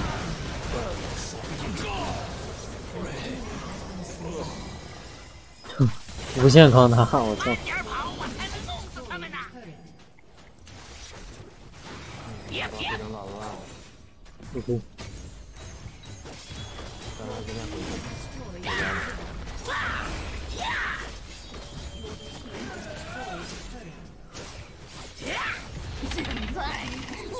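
Game sound effects of spells and hits play throughout.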